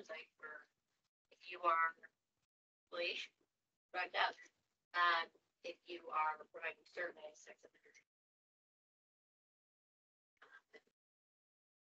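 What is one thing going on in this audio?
A man speaks calmly, heard through a room microphone.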